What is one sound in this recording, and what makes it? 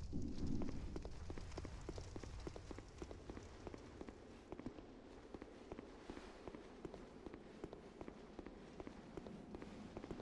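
Footsteps clatter on stone.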